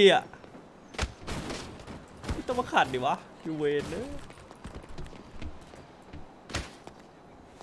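A body thuds down onto stone stairs.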